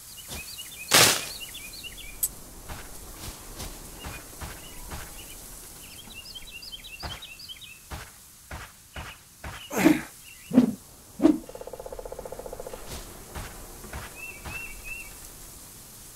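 Footsteps tread steadily on soft ground.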